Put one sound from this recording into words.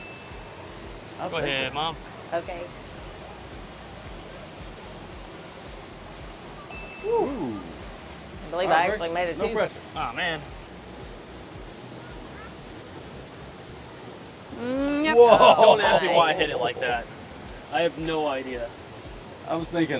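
A golf putter taps a ball.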